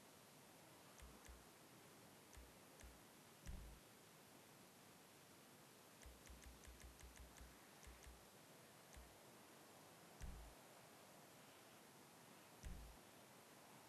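Game menu clicks tick softly as options are scrolled through.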